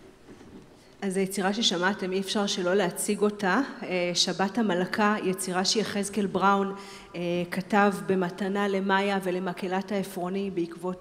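A women's choir sings together in a large hall.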